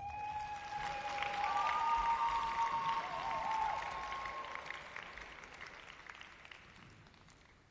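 Skate blades scrape across ice in a large echoing hall.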